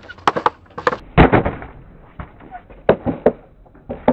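A skater crashes hard onto concrete.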